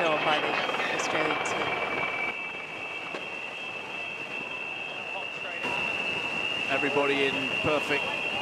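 Water rushes and sprays under a fast sailing boat's hull.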